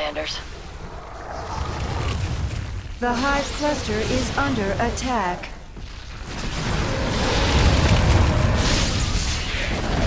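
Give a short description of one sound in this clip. An electric beam crackles and zaps.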